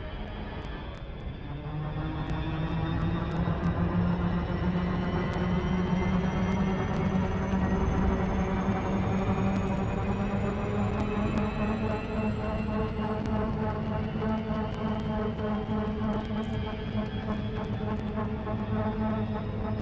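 A spaceship engine hums with a deep, steady drone that slowly rises in pitch.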